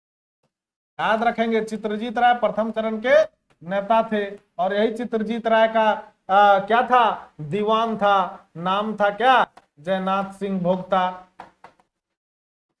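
A man speaks clearly and steadily, close to a microphone.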